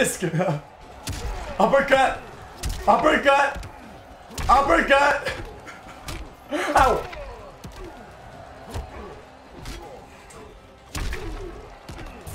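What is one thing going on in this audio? Punches and kicks thud in a fight.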